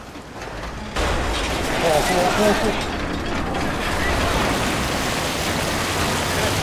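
Heavy rain pours down steadily.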